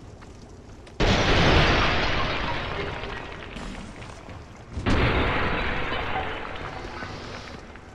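Clay pots shatter with a loud crash.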